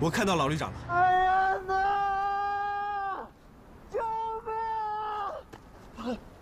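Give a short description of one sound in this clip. A man shouts for help from far off outdoors.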